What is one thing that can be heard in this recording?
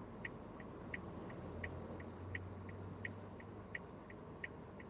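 A small truck drives past close by.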